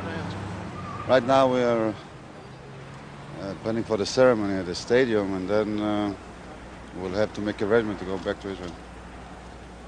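A middle-aged man speaks calmly into a microphone outdoors.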